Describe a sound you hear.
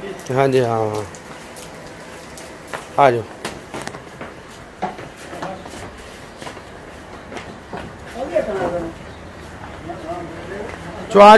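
Hooves clop on a hard paved path.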